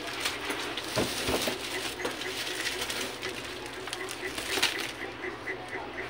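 Cardboard rustles and scrapes as a box is handled.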